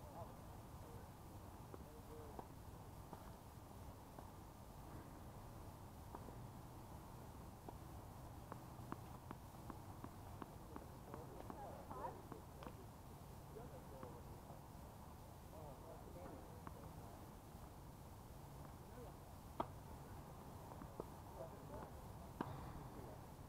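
Tennis balls pop off rackets in sharp hits outdoors.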